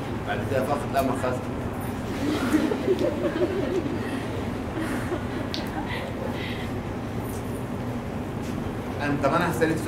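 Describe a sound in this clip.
An elderly man lectures calmly into a microphone in an echoing room.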